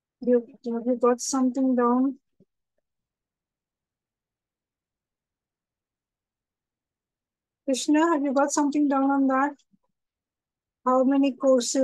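A woman speaks calmly and clearly into a microphone, in short bursts with pauses.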